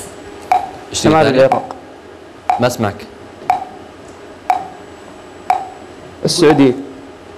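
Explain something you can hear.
A young man speaks briefly and hesitantly.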